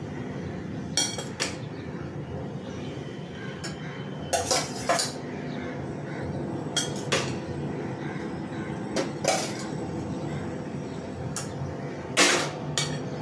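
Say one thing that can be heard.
A metal spoon clinks and scrapes against a metal pot.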